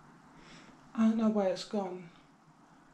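A young woman speaks briefly and expressively close by.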